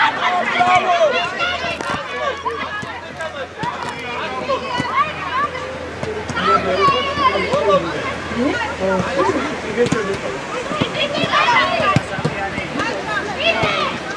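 Young boys shout and call to each other outdoors.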